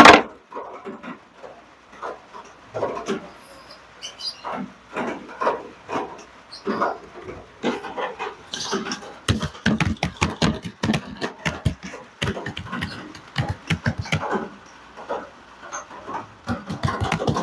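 A woman talks nearby with animation.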